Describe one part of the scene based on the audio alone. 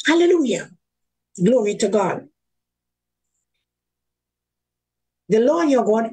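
An elderly woman speaks with animation through an online call, in short bursts with pauses.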